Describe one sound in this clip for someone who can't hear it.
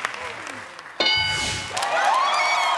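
A game show board rings out with a bright chime.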